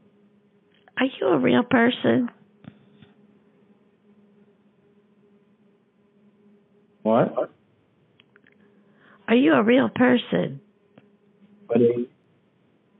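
An elderly woman speaks with animation in short bursts.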